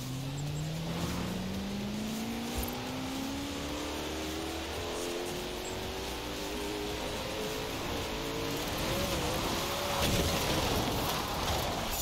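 A car engine roars and rises steadily in pitch as it speeds up.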